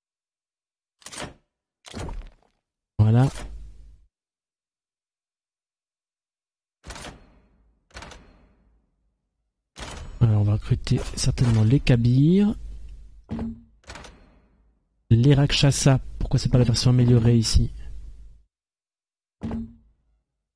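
Short game menu clicks and chimes sound at intervals.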